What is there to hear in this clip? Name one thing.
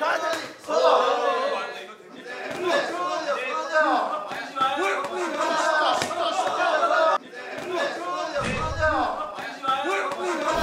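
Boxing gloves thud against pads.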